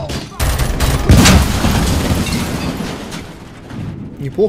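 A large explosion booms loudly and rumbles.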